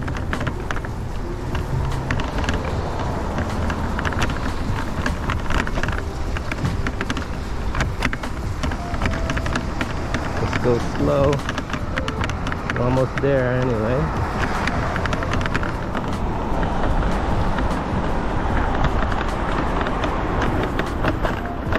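Footsteps tap steadily on a wet pavement.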